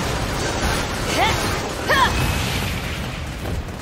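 A sword slashes and strikes a beast.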